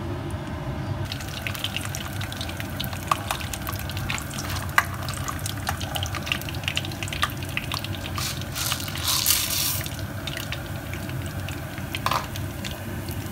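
Peanuts sizzle and pop in hot oil in a pan.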